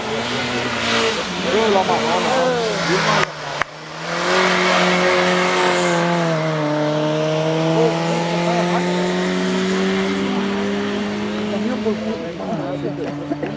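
A small historic rally car accelerates hard out of a hairpin and pulls away into the distance.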